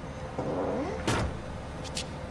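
A car door slams shut nearby.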